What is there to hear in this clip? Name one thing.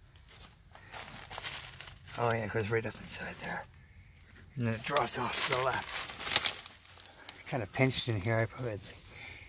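Dry leaves rustle and crunch underfoot.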